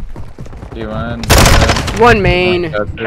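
Gunshots fire in a quick burst.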